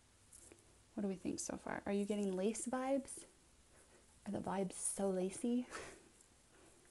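A young woman speaks softly and close up.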